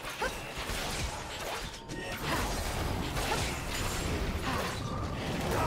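Weapons strike with sharp hits.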